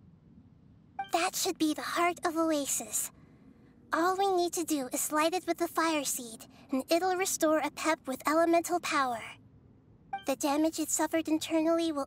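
A young girl speaks calmly and gently.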